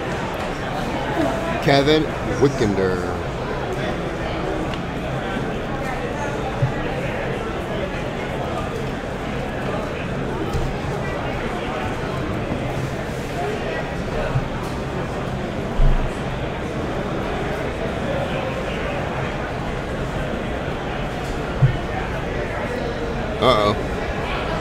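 A man talks steadily through a microphone.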